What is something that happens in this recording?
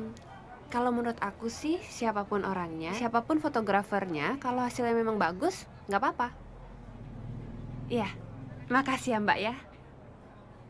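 A young woman talks on a phone close by, with animation.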